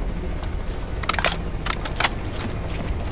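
A rifle magazine is swapped with metallic clicks.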